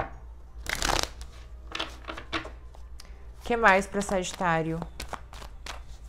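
Cards shuffle and riffle in a person's hands.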